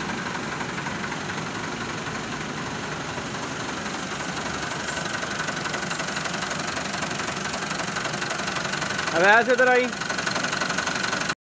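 A tractor engine idles nearby with a steady rumble.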